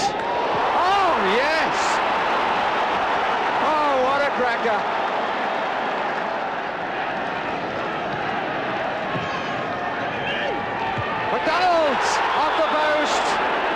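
A large crowd roars and cheers outdoors.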